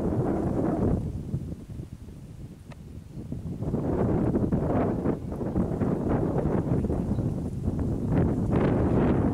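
Water sloshes and splashes around people wading waist-deep.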